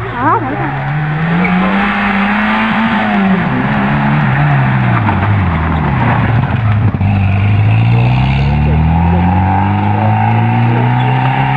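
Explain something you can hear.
A rally car engine revs hard and roars past close by, then speeds away.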